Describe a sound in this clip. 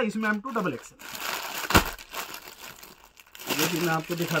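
Plastic wrapping crinkles and rustles as a man handles packs.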